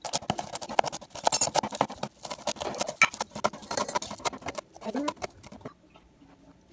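A knife chops herbs rapidly on a cutting board.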